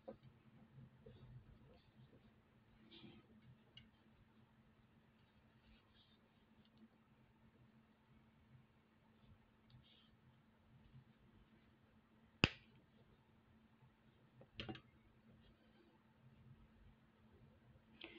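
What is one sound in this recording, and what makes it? Small beads click softly as fingers sort and thread them.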